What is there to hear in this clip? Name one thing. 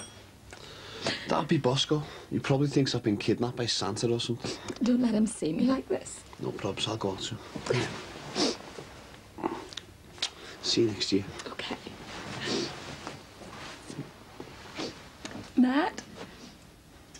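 A young man speaks softly and emotionally up close.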